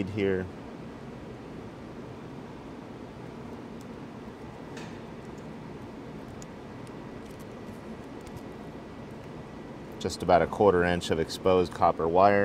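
A wire crimping tool clicks shut.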